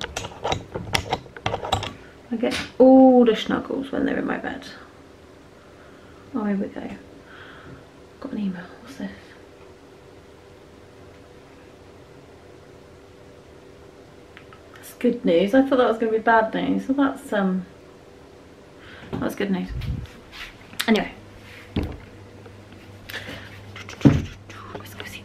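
A woman talks calmly and close by, in short bursts.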